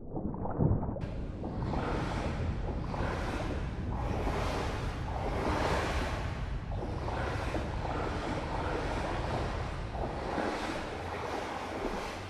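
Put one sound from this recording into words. Hands and feet thump rhythmically on metal ladder rungs while climbing.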